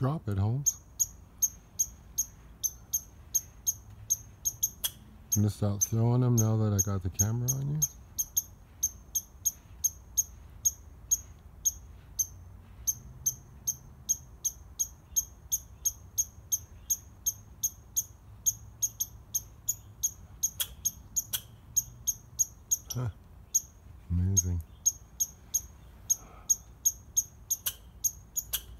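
A squirrel chirps sharply and rapidly, over and over, close by.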